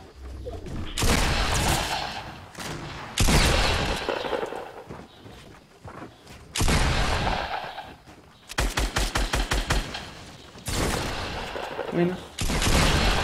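Wooden walls and ramps are built with loud thumping bursts.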